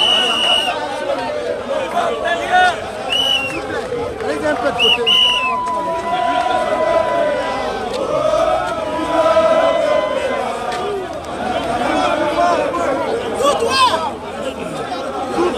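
A large crowd of men chants and sings loudly outdoors.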